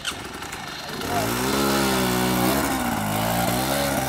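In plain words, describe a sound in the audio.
A dirt bike engine revs loudly and roars.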